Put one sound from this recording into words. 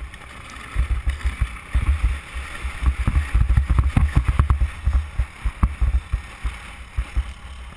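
Tyres crunch and bump over packed snow.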